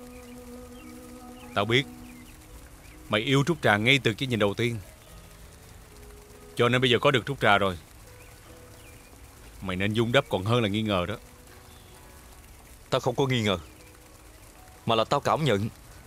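A second man answers in a low, calm voice nearby.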